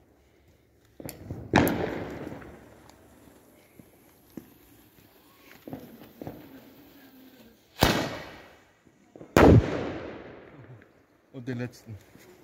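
Fireworks bang loudly outdoors, echoing off buildings.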